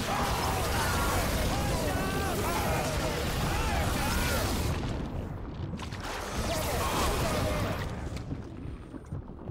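Heavy rain and wind roar over rough water.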